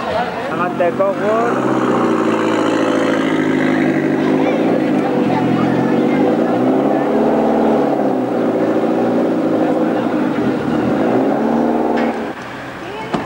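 A rally car engine revs loudly and roars as the car drives away.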